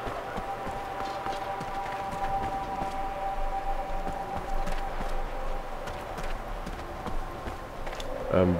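Footsteps crunch on a dirt floor.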